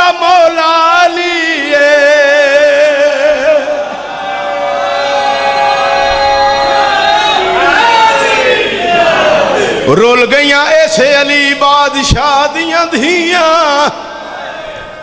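A crowd of men chants along and beats their chests in rhythm.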